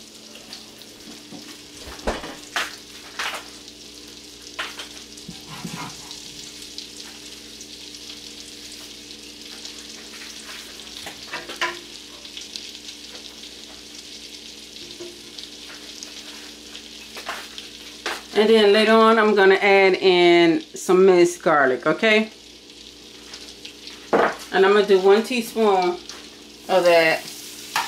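Butter sizzles softly in a hot pan.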